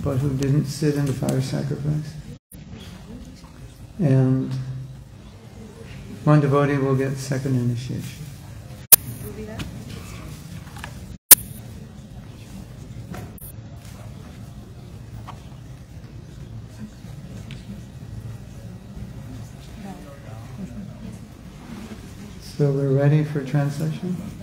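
An elderly woman sings slowly into a microphone, heard through a loudspeaker in an echoing hall.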